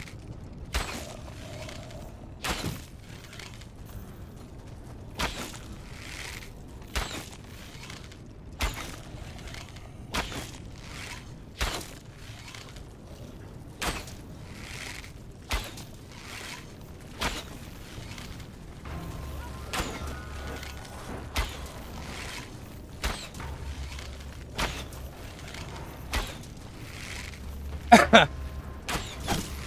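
A pickaxe strikes rock in a slow, steady rhythm.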